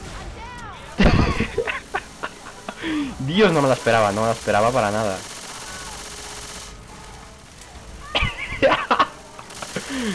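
Loud gunshots crack in short bursts.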